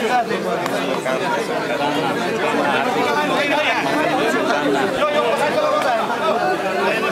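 An elderly man laughs cheerfully nearby.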